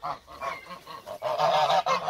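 A goose flaps its wings.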